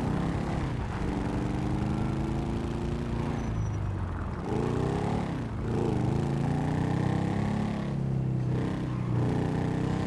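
A small motorbike engine hums steadily and revs up and down.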